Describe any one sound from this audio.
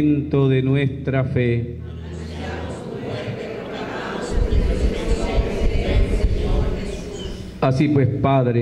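A man sings through a microphone in a slow, drawn-out chant.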